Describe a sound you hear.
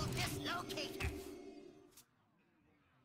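A magical game sound effect chimes and swells, then cuts off.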